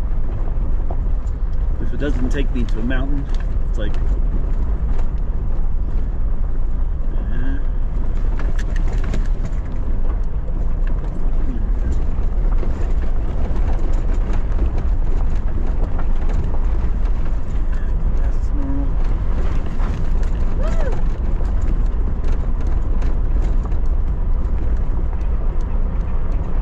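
Tyres crunch and rattle on a gravel road.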